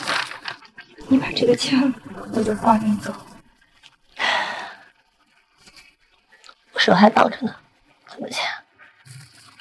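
A young woman answers in a hurt, pleading voice, close by.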